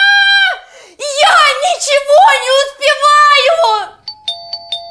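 A young woman speaks in an upset, pleading voice.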